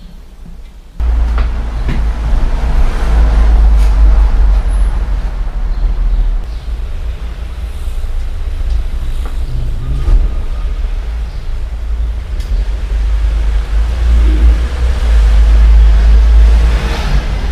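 Metal parts of a bicycle clink and rattle as they are handled.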